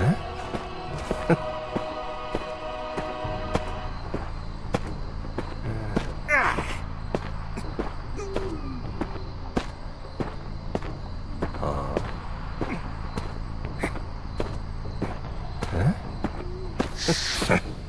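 Footsteps patter quickly and steadily on the ground.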